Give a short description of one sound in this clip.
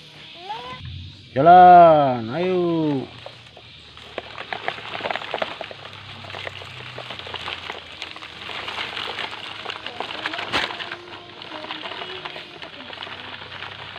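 Plastic toy trucks roll over dry leaves and soil with a faint crunching.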